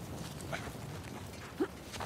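Footsteps crunch on stony ground.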